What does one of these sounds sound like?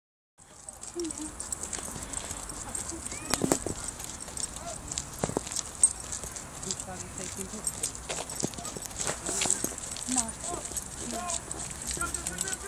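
A dog's tags jingle lightly as it walks.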